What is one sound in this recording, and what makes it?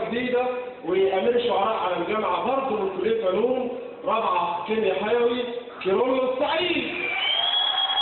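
A young man sings loudly through a microphone in a large echoing hall.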